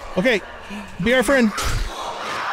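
A zombie growls and snarls up close.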